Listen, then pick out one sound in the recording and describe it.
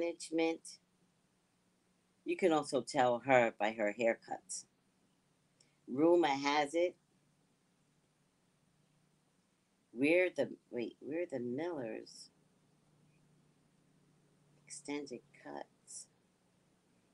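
A woman speaks close to a microphone in short bursts, with animation.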